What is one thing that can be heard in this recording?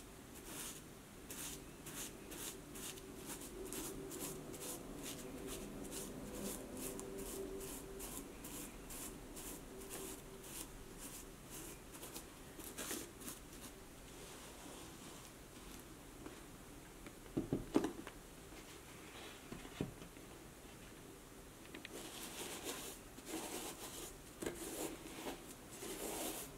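A cloth rubs briskly over a leather boot.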